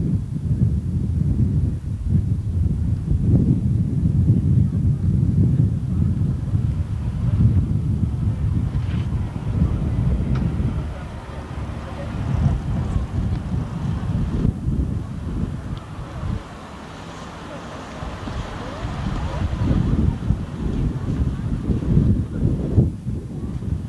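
A small car engine idles and chugs as the car rolls slowly forward.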